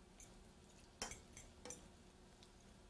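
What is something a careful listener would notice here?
A spoon scrapes and clinks against a pan.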